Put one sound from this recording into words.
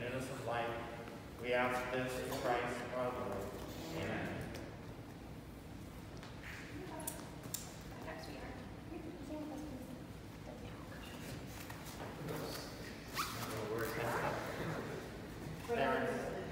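An elderly man reads aloud in a calm voice in an echoing room.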